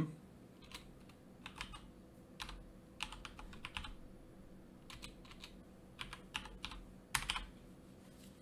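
Keys clatter on a keyboard in quick bursts.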